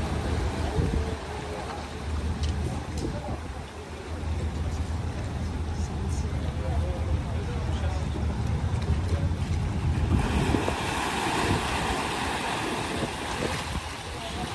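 A boat engine rumbles low and steady.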